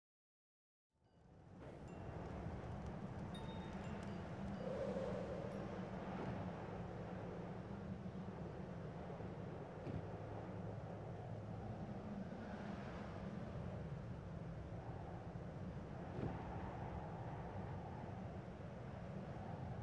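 Wind blows steadily through a snowstorm.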